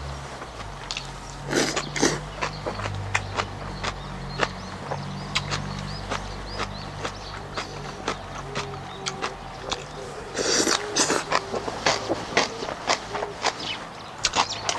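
A man chews food loudly and slurps close to a microphone.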